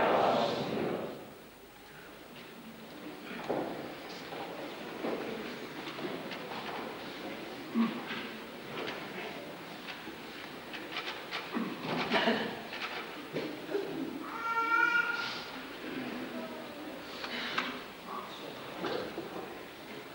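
A crowd of men and women murmurs and talks quietly in an echoing room.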